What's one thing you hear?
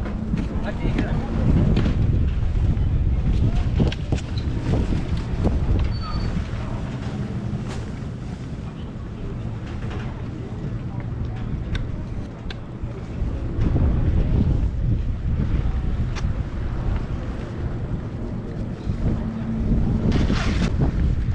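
Wind blows and rumbles outdoors, gusting in spells.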